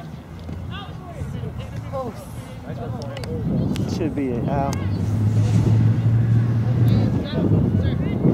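Young players and spectators shout across an outdoor field.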